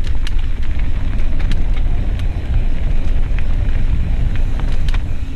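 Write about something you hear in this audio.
A mountain bike rattles over bumps on a dirt trail.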